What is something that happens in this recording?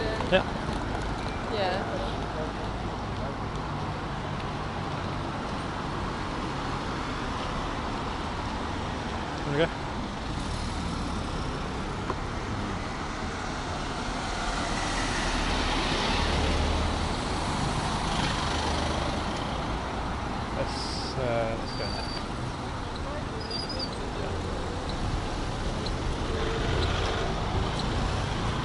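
Car traffic passes steadily outdoors.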